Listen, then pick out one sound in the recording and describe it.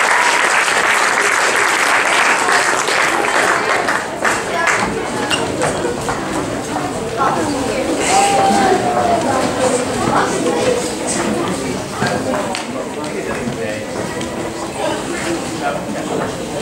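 A crowd of children chatters and calls out on stage.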